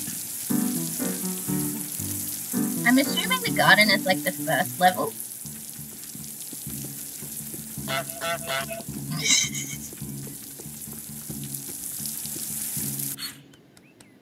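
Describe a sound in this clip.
A garden sprinkler hisses steadily as it sprays water.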